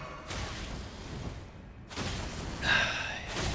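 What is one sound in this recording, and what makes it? Heavy blows and clashing weapons sound in a game fight.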